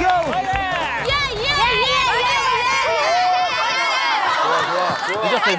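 Young women squeal and cheer excitedly.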